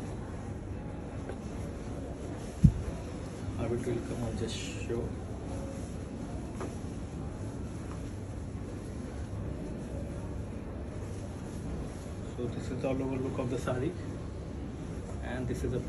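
Silk fabric rustles as it is handled.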